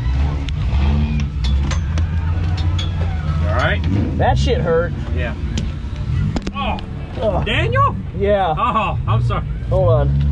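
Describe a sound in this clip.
A driver bumps and knocks about inside a crashed race car's cabin.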